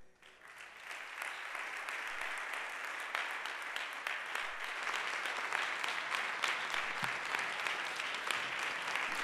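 An audience applauds in a large echoing hall, the clapping swelling and growing louder.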